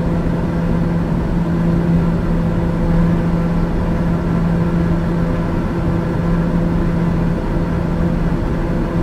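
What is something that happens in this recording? An aircraft engine drones steadily in flight.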